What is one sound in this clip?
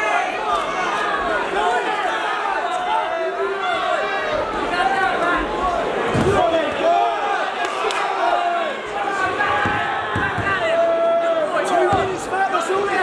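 Boxing gloves thud against a body and gloves.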